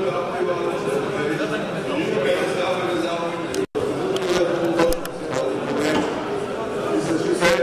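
A crowd of men murmurs and chants together in a large, echoing hall.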